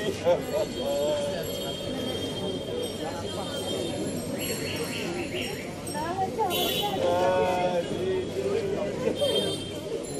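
A middle-aged woman wails and sobs loudly.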